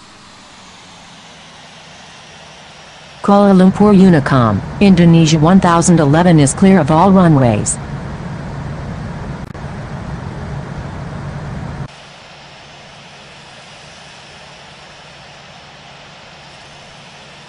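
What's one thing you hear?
Jet engines roar steadily.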